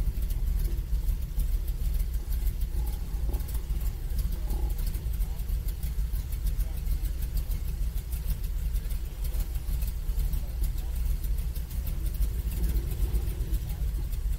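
An airboat's propeller engine roars steadily.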